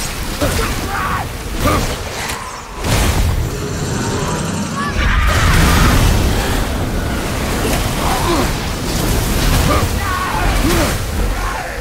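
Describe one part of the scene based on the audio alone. Fire bursts and roars.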